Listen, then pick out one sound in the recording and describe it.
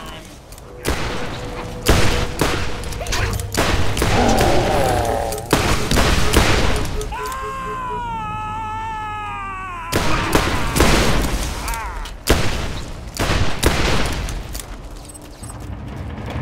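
Pistol shots crack out rapidly, one after another.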